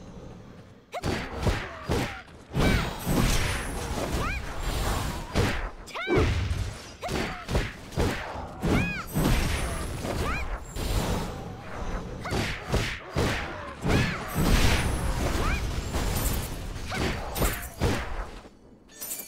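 Weapons clash and slash in a fast fight, with sharp impacts.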